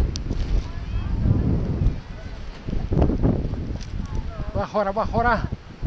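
Wind buffets the microphone in rough gusts.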